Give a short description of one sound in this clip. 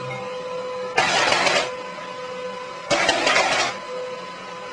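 A printer whirs in short bursts as it feeds paper.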